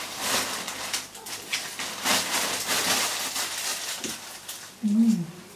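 Fabric rustles close by as hands work.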